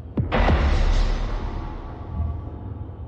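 A loud blast booms and rumbles away.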